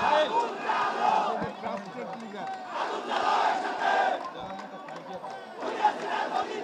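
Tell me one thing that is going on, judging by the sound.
A man speaks loudly into a microphone over a loudspeaker outdoors.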